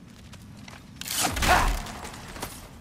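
A heavy wooden chest is thrown open with a loud burst.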